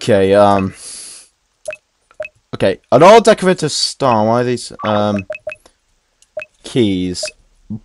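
Short electronic blips sound as a game menu cursor moves.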